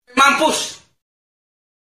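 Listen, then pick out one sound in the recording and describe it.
A young woman screams loudly.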